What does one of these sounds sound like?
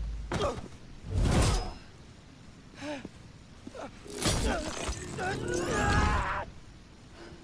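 Heavy blows land in a fight.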